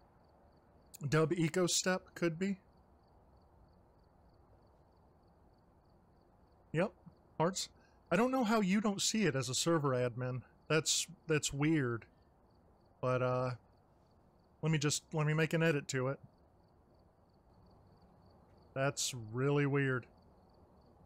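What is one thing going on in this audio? A man talks casually and close into a microphone, in short bursts.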